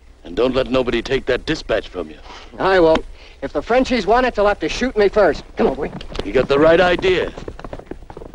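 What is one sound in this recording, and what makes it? A man speaks calmly outdoors.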